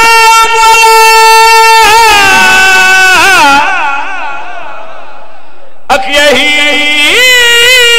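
A man chants loudly and passionately through a microphone, with a reverberant loudspeaker sound.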